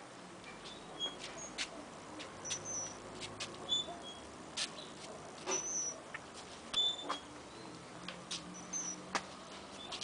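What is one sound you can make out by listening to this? Footsteps shuffle on a paved path.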